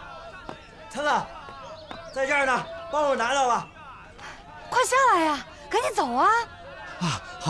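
A young woman calls out loudly and urgently.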